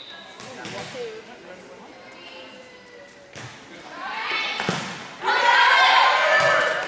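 Voices of girls and women echo around a large hall.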